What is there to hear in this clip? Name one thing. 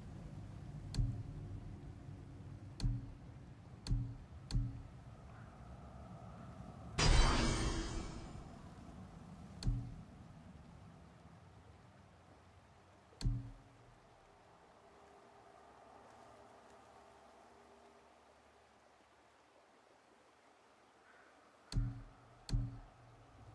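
Soft menu clicks sound as selections change.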